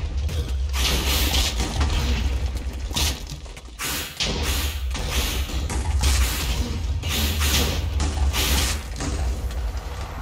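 Loud booming bursts and hits of a video game battle ring out.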